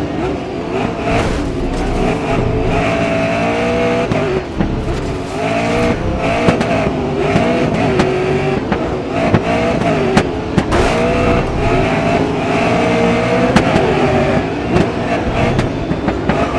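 Racing cars bump into each other with sharp knocks.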